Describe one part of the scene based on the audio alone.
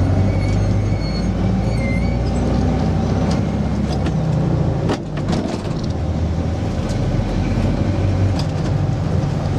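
An old bus engine rumbles and hums steadily from close by.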